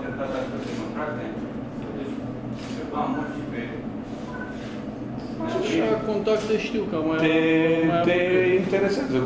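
An older man speaks with animation into microphones.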